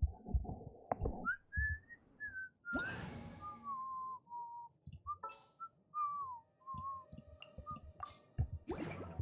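Soft menu chimes and clicks sound in quick succession.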